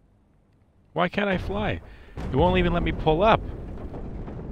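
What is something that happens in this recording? A plane crashes with a loud explosion.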